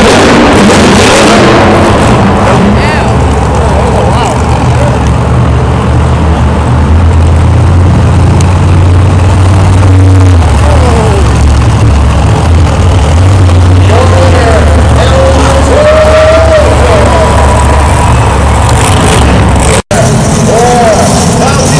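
Monster truck engines roar loudly in a large echoing arena.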